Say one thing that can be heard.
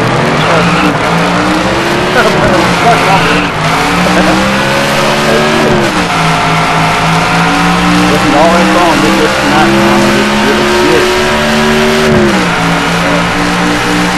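A race car engine roars steadily at high speed, its pitch rising and dipping slightly.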